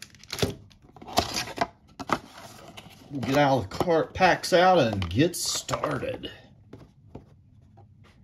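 A cardboard box scrapes and taps as it is handled.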